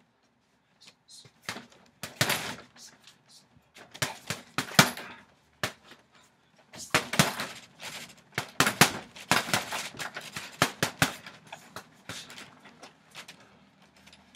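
Gloved punches thud against a heavy bag in quick bursts.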